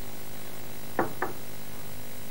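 A plastic cap clicks onto a glass bottle.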